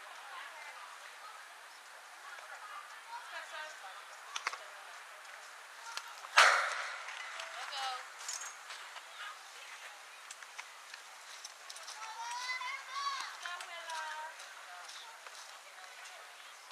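Players shout and call out across an open field.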